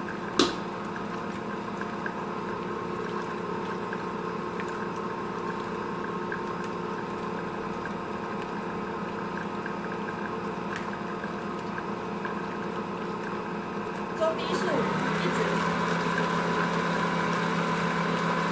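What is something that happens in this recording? A spatula scrapes and stirs batter in a metal bowl.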